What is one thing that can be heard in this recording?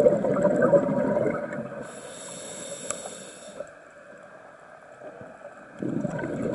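A scuba diver breathes out through a regulator, sending up gurgling bubbles underwater.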